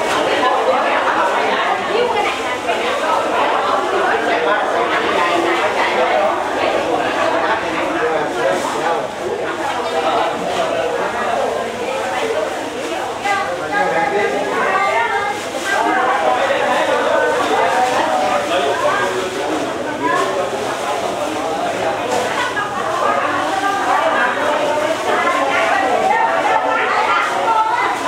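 A crowd of men and women chatter loudly indoors, in a room that echoes.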